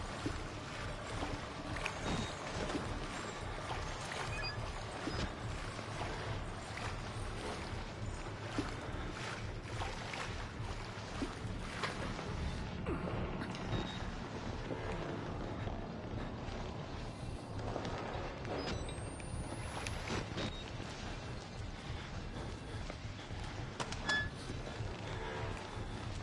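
Footsteps splash through shallow water in an echoing tunnel.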